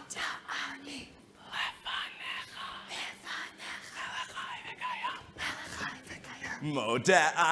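People in a crowd chatter softly.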